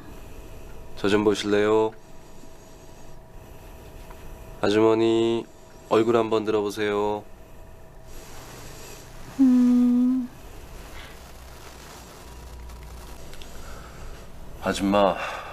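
A man speaks calmly and gently nearby.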